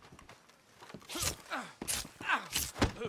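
Blows land in a close scuffle.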